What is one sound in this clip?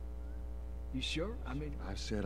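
A man speaks calmly and hesitantly, close by.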